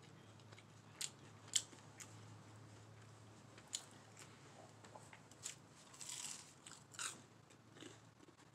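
A woman chews and crunches on crispy food.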